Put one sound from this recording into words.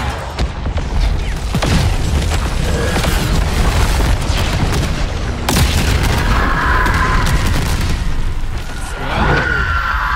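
A gun fires rapid bursts of shots.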